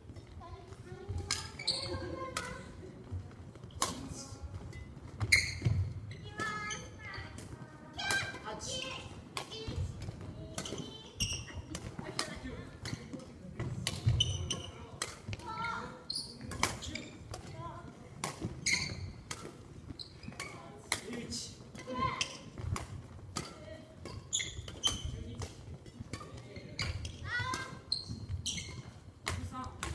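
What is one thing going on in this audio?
Sneakers squeak and thud on a wooden floor.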